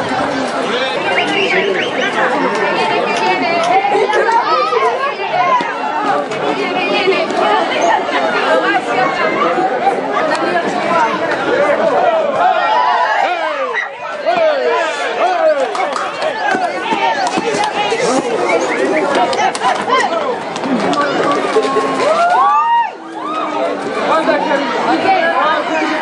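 A crowd of men, women and children shouts and cheers loudly outdoors.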